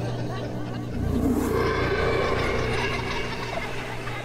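A loud monster roar bursts out suddenly.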